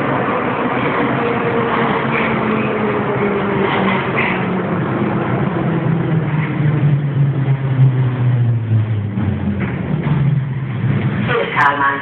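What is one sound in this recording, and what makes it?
An electric motor whines, falling in pitch as a subway train slows to a stop.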